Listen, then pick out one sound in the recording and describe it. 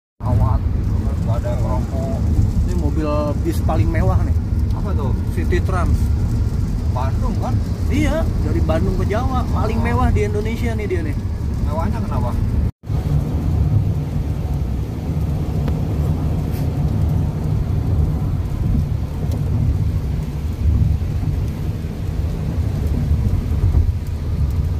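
A car's tyres and engine rumble steadily on a wet road.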